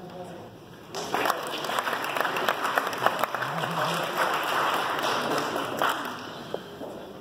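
A group of people applaud.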